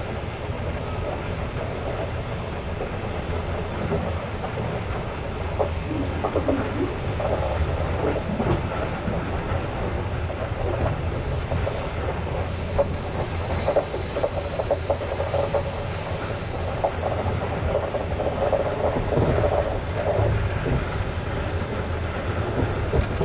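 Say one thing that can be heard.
Wheels clatter over rail joints.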